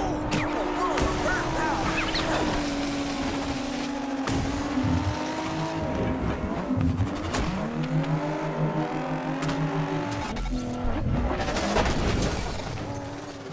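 A car engine roars and revs.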